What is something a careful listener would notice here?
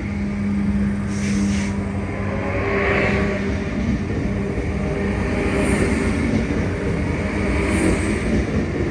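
Train wheels screech and hiss on the rails.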